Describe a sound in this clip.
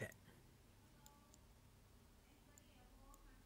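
Small metal parts click softly together.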